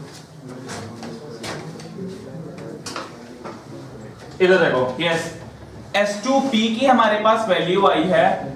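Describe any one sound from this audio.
A young man speaks in a lecturing tone, close by.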